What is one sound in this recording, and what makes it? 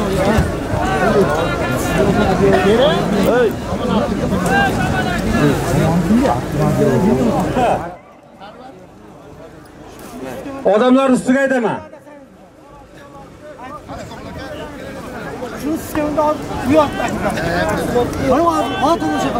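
A crowd of men and women chatters loudly close by outdoors.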